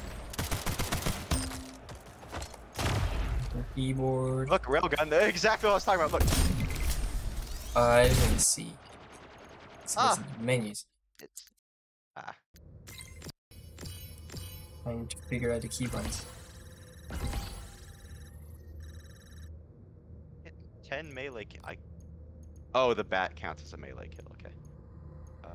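Game menu clicks and soft beeps sound as options are selected.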